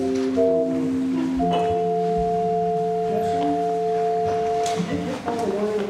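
An organ plays sustained chords in a large echoing hall.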